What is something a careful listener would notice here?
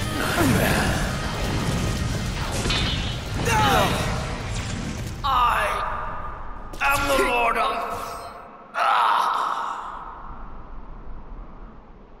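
Magic blasts whoosh and crackle in a fight.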